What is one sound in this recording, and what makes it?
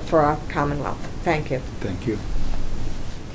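A woman speaks calmly into a microphone nearby.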